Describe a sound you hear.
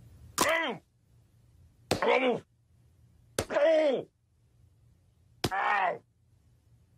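An elderly man groans in short bursts.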